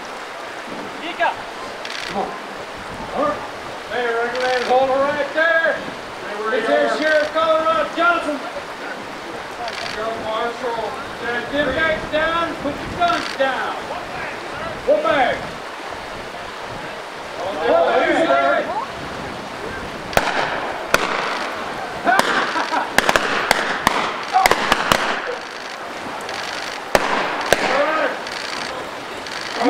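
A fast river rushes and splashes over rocks.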